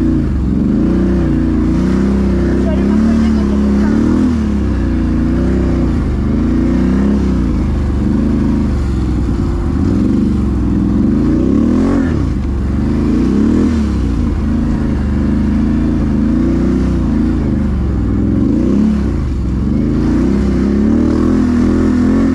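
A quad bike engine revs up and down loudly close by.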